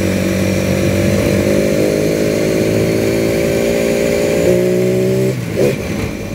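A vehicle engine hums steadily while driving.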